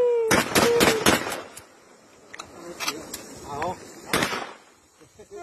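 Gunshots crack loudly outdoors, echoing off the hills.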